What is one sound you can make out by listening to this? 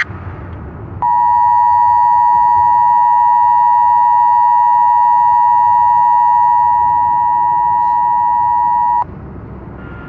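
A loud, steady alert tone blares and then stops abruptly.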